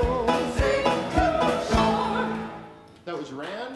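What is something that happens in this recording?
A small group of singers sings a slow hymn.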